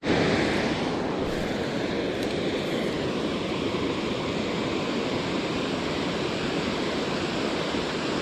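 Water rushes steadily over a weir nearby.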